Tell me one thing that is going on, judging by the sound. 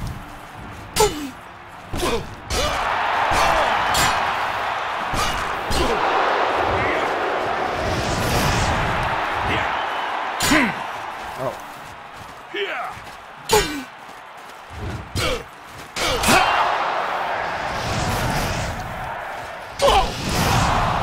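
Metal weapons clang against shields.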